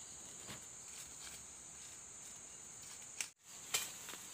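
Dry corn stalks rustle and crackle as a person pushes through them.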